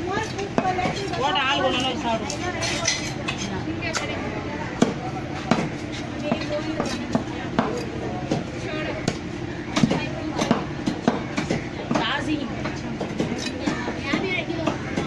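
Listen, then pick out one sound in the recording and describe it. A knife scrapes scales off a fish.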